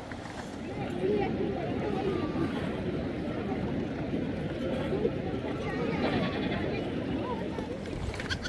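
Young goats bleat close by.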